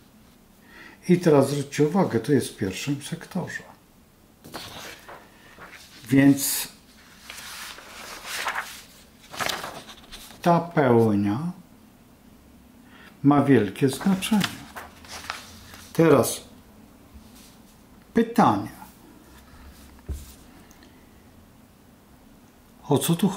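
An elderly man speaks calmly close by, with pauses.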